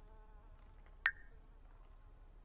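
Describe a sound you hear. A bright notification chime rings.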